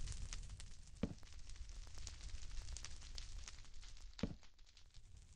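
Wooden blocks thud as they are placed.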